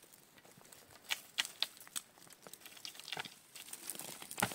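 Leafy branches rustle as they are shaken with a stick.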